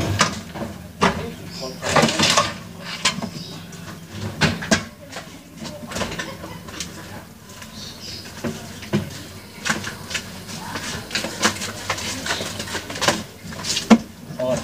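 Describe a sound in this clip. A man knocks and bangs on a wooden box.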